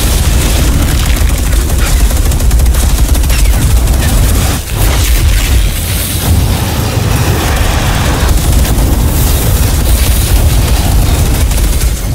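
Fiery explosions roar and crackle.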